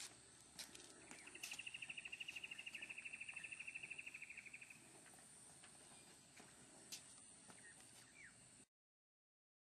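Leaves rustle softly in a light breeze outdoors.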